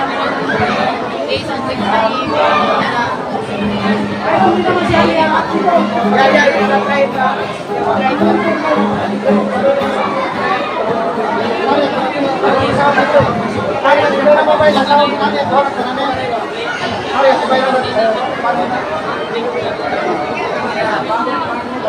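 A woman sings loudly through a microphone.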